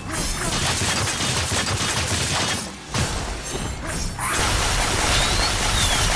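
Explosive bursts of energy boom and crackle.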